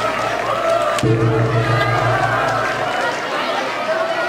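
A gong is struck once and rings out, slowly fading.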